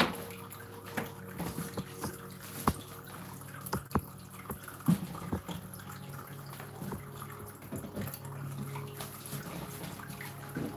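A wood fire crackles and pops.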